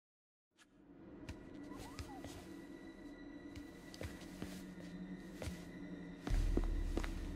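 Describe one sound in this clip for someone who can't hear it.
Soft footsteps and taps sound on a hard floor as someone crawls.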